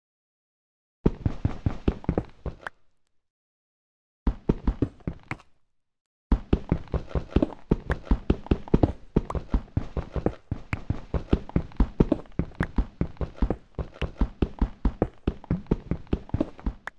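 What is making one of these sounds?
A pickaxe chips rapidly at stone with quick crunching taps, pausing now and then.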